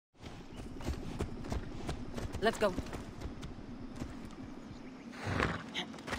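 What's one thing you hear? Horse hooves thud on soft ground.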